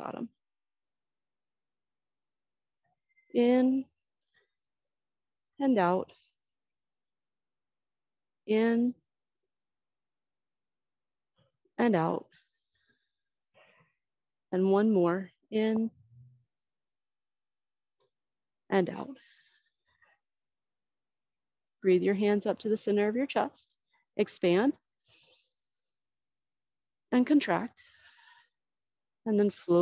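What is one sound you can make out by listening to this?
A woman speaks calmly in short phrases, close to a microphone, with pauses between them.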